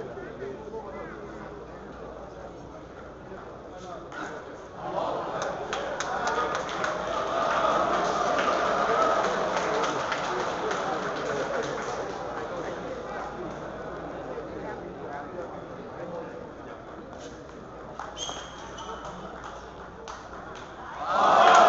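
A ping-pong ball clicks back and forth on paddles and a table.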